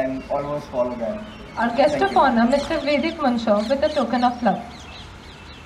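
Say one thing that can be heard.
A man announces through a loudspeaker outdoors.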